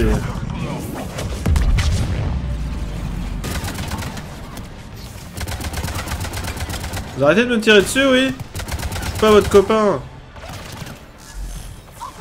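Gunshots crack in rapid bursts.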